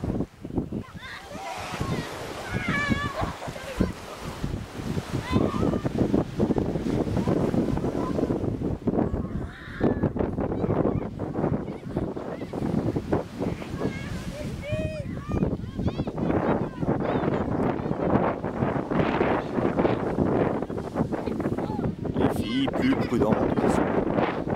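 Children shout and call out in the distance.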